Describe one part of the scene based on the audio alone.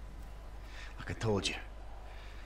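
A second man answers in a low voice.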